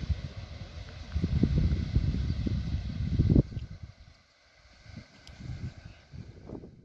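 Wind gusts blow hard across the microphone outdoors.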